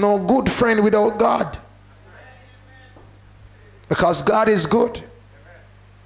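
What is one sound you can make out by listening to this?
A man preaches with animation through a microphone, in bursts with pauses.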